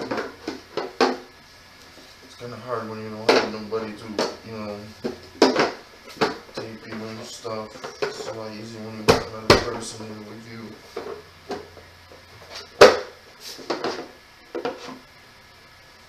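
Wooden pieces knock and clatter as they are handled.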